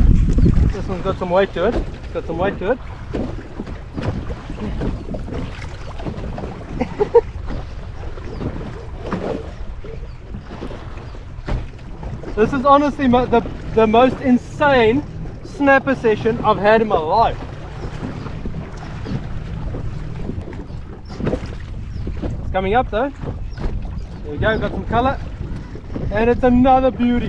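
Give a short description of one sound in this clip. A man talks with animation close by.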